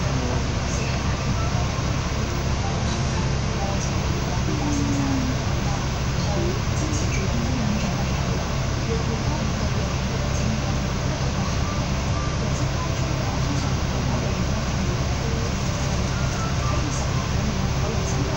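Traffic hums along a street outdoors.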